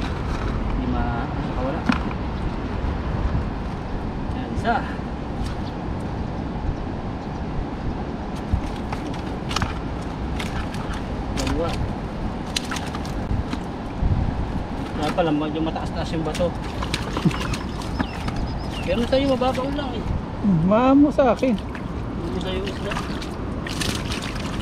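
Fish flap and slap in a wet net.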